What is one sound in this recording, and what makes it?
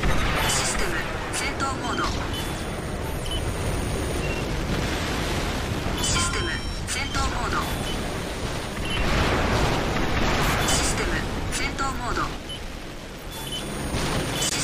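Gunfire and explosions ring out in a video game battle.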